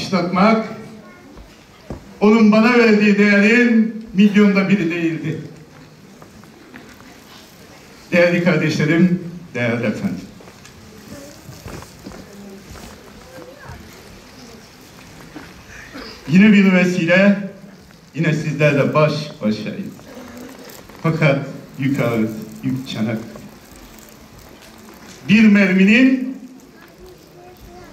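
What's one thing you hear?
A man recites with strong emotion through a microphone and loudspeakers in a large echoing hall, pausing between lines.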